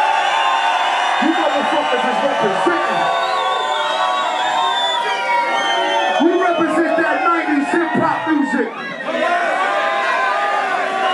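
A large crowd cheers and sings along in an echoing hall.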